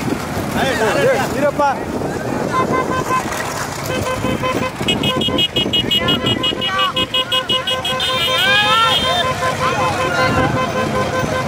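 Motorcycle engines rumble steadily close by.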